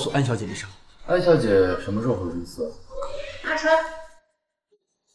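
A second young man asks a question calmly.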